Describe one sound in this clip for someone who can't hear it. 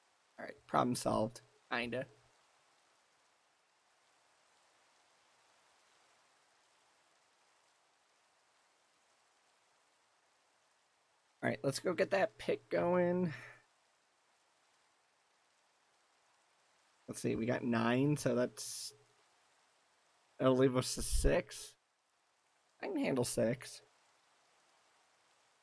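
Rain falls steadily and softly.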